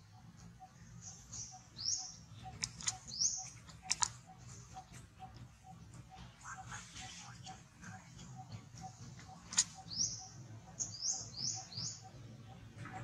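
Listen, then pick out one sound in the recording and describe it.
A baby monkey squeaks in short high cries.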